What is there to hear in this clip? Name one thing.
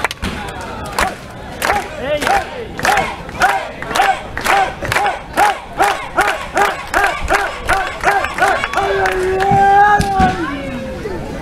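A crowd claps in a steady rhythm.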